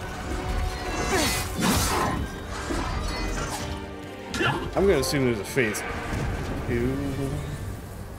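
Swords clash and strike in a fierce fight.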